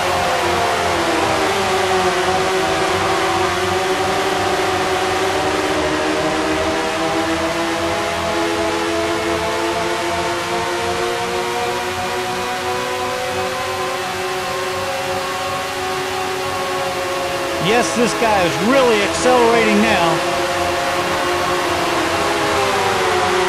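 A racing car engine whines steadily at high revs, shifting pitch as the car speeds up and slows.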